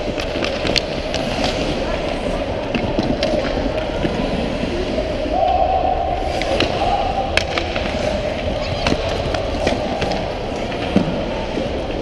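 Hockey sticks clack sharply against a puck in a large echoing rink.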